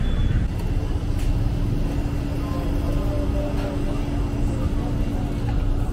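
A grill fire hisses and crackles.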